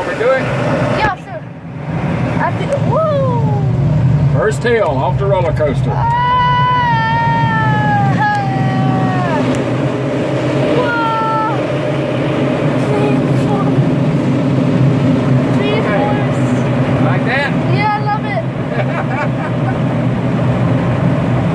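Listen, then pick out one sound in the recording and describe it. Air rushes steadily past a glider's canopy in flight.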